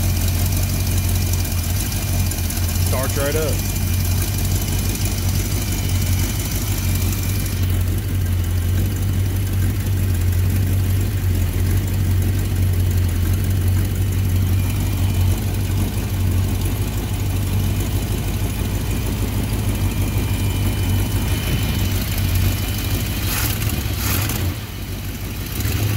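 A car engine idles with a steady, low, rumbling hum.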